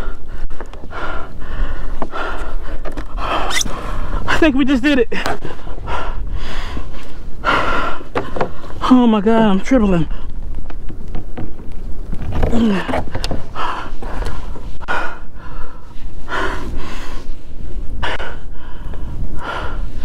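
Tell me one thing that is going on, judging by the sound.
A man talks with animation close to a microphone, outdoors in wind.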